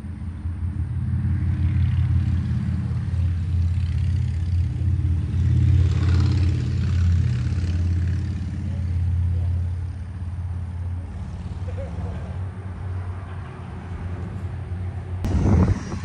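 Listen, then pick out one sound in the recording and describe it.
Men talk quietly at a distance.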